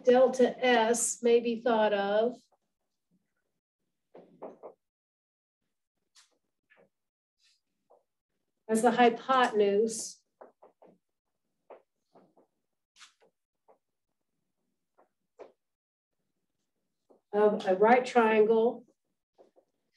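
A woman speaks calmly through a microphone, pausing between phrases.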